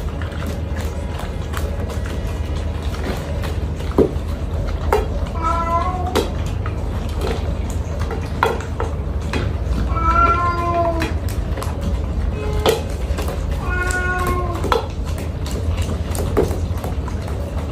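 Dogs lap and chew food noisily from metal bowls.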